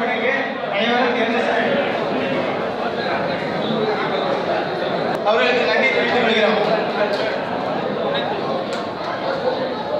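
A man speaks loudly through a microphone and loudspeakers in an echoing hall.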